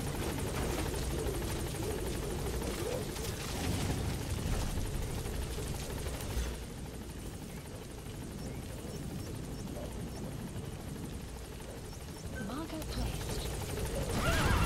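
A helicopter's rotor thumps and whirs nearby.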